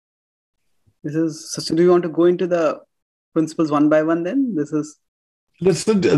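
A man speaks thoughtfully over an online call.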